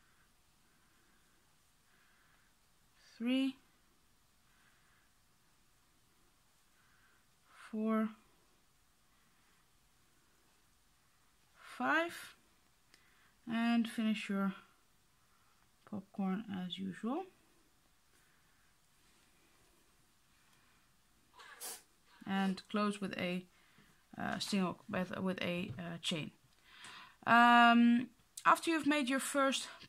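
A crochet hook softly draws yarn through stitches.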